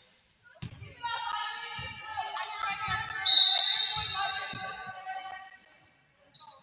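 Spectators cheer and shout from the stands.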